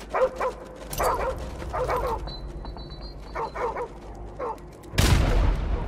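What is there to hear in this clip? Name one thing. Boots climb metal ladder rungs with light clanks.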